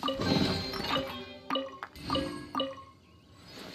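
A bright chiming jingle rings out as a treasure chest opens.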